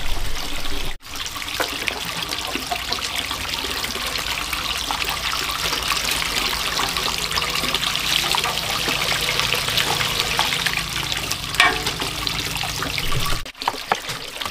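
A knife scrapes and shaves the skin off a firm vegetable.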